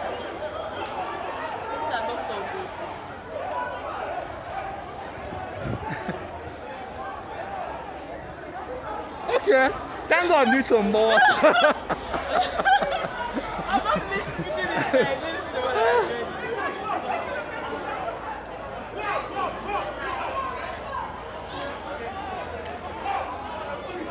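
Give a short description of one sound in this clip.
A crowd of men and women shout and chatter outdoors, close by and far off.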